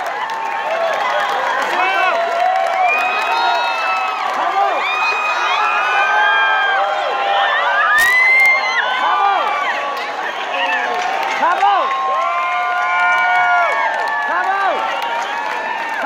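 Audience members whistle shrilly again and again.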